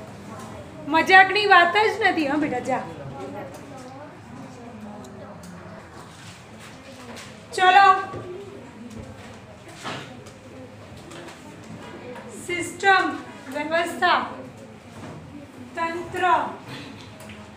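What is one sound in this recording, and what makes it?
A young woman speaks loudly and clearly.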